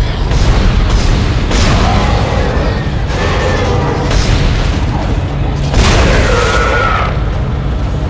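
A gun fires in sharp bursts.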